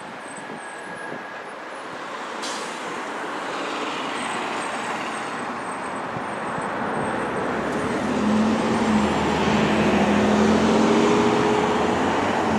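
Tyres of cars hiss on the road as traffic passes.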